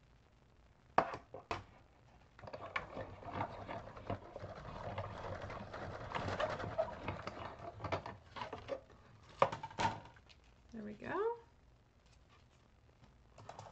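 A plastic cutting plate clicks and rattles as it is handled.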